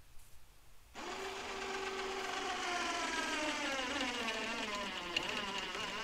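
A chainsaw engine starts up and runs loudly, its pitch slowly dropping.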